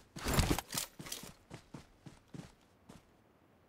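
Gunshots crack in short, quick bursts.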